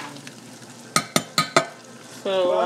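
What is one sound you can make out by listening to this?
A metal pot lid clinks against a pot.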